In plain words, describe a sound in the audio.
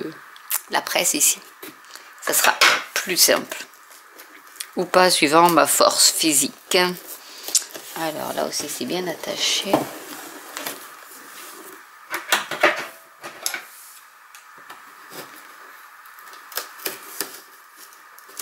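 Cardboard packaging rustles and scrapes as hands handle a box.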